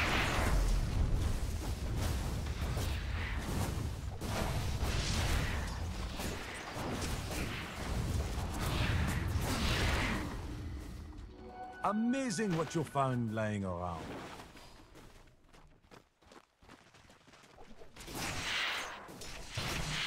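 Spell blasts and clashing battle effects ring out in a fight.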